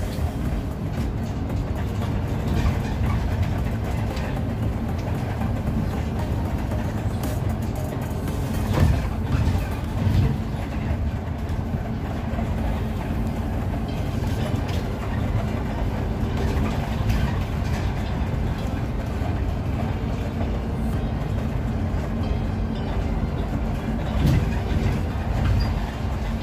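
A bus body rattles and clanks over the road.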